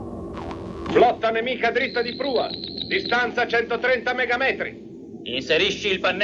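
A man speaks in a tense voice.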